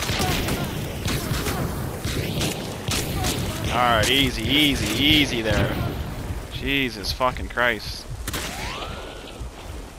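Flames crackle and roar close by.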